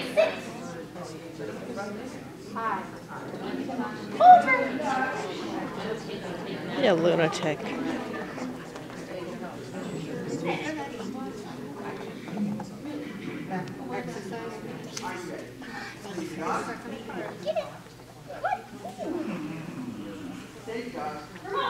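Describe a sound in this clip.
A young woman calls out and praises a dog with animation.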